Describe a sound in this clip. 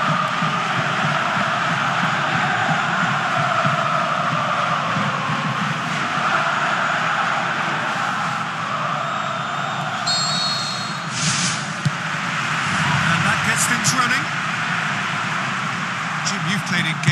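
A large stadium crowd cheers and chants steadily.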